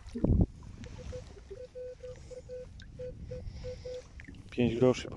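A metal detector beeps in short, even pulses.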